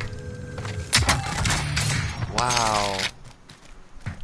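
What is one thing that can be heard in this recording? A metal crate clanks open.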